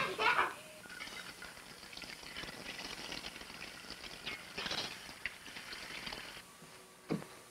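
Eggs sizzle softly in a frying pan.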